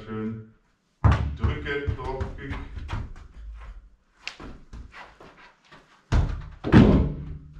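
A football thuds as it is kicked against a wall.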